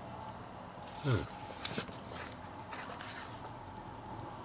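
A paper booklet rustles as it is handled and its pages are turned.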